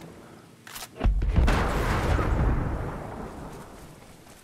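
A heavy gunshot booms and rumbles away.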